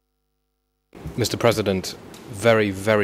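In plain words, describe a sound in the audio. A man speaks formally into a microphone.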